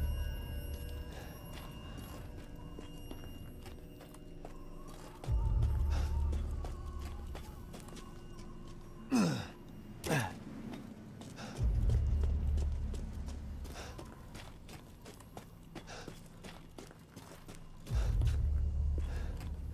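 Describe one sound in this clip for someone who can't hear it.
Footsteps crunch slowly over snowy roof tiles.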